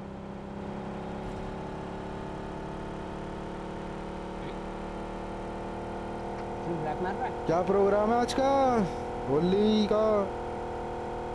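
A game car engine drones steadily.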